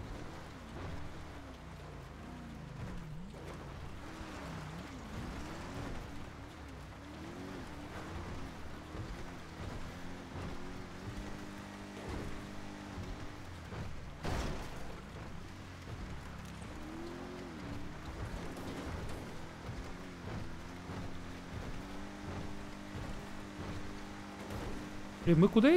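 A car engine revs up and down, then hums steadily.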